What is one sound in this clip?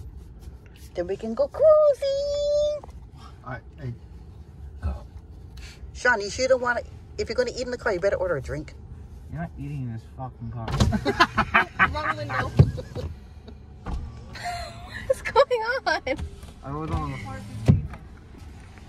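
Young men talk and laugh close by inside a car.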